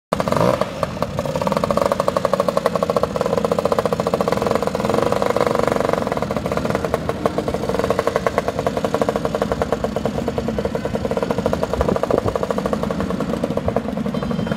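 A small scooter engine putters and idles close by.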